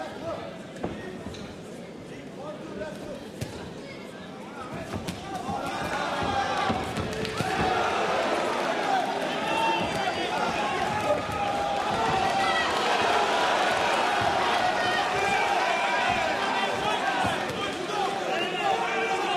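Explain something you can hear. A large crowd cheers and shouts, swelling louder.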